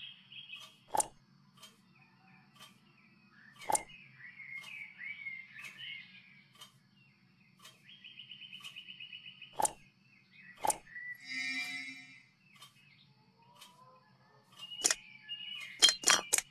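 Short chiming clicks sound as glass orbs swap places.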